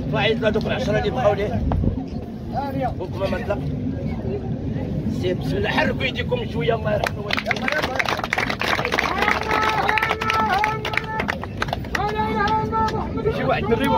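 A crowd murmurs outdoors.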